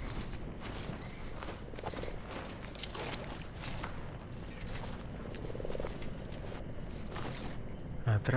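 Footsteps crunch through dense leaves and brush.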